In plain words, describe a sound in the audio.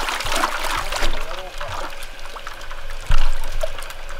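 Fish knock against the side of a plastic bucket.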